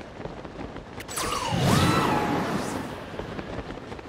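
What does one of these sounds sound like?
A magical burst flares up with a bright shimmering whoosh.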